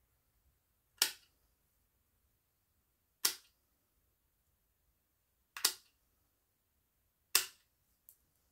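Tin snips clip through thin metal with sharp snaps.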